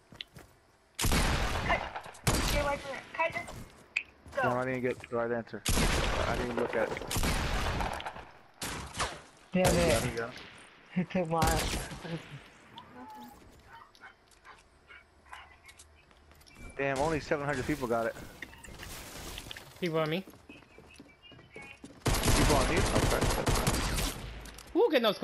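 Gunshots fire in loud rapid bursts.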